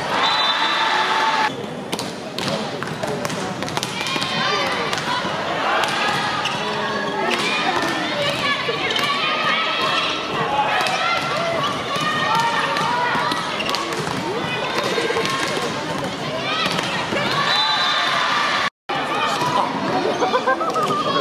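A large crowd cheers and chants in a big echoing hall.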